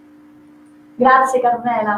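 A young woman speaks brightly into a microphone.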